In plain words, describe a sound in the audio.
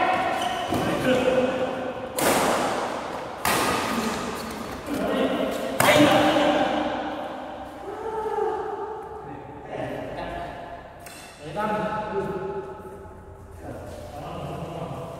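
Young men talk and call out across a court.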